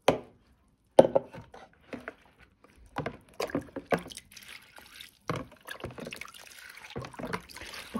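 Water pours from a cup and patters onto a plant's roots.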